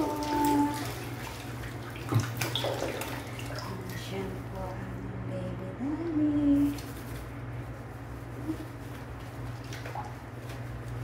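Hands squelch as they rub lather into wet fur.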